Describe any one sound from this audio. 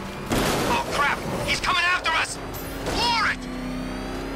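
Metal crashes and bangs as vehicles collide.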